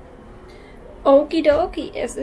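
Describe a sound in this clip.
A young woman talks calmly, close by.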